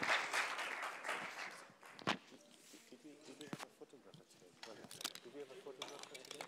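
A man speaks calmly to an audience through a microphone in a large echoing hall.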